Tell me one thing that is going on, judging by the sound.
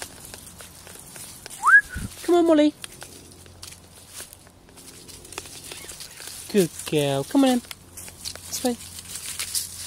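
Dry leaves rustle underfoot.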